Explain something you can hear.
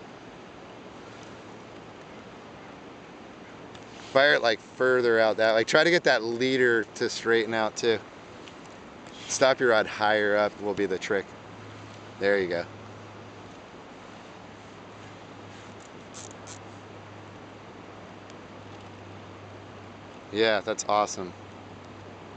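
A river flows gently.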